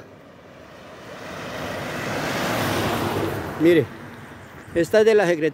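A vehicle approaches and drives past close by, its engine rising and then fading.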